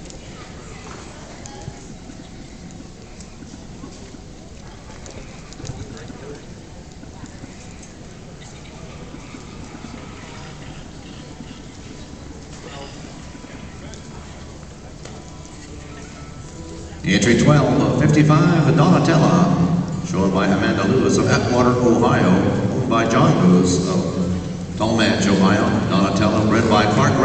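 A crowd murmurs softly in a large echoing arena.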